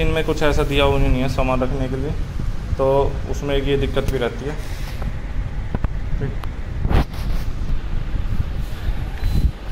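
A copier hums steadily.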